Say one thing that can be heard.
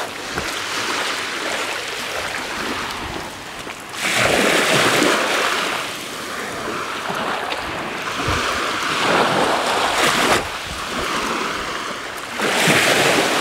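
Small waves lap and wash gently onto a pebbly shore.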